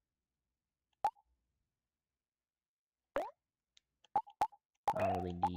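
Short electronic menu blips sound.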